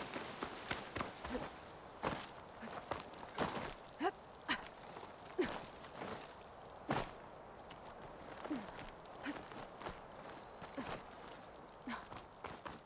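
Hands and boots scrape and knock on rock in quick bursts.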